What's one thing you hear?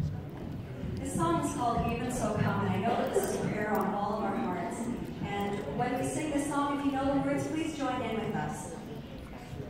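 A choir of children and adults sings together through loudspeakers in an echoing hall.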